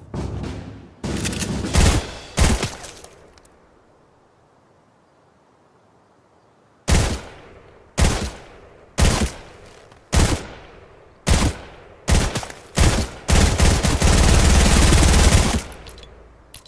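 Video game gunfire rattles in rapid bursts.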